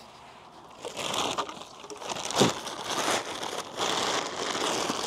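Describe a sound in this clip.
A plastic bag of soil rustles and crinkles.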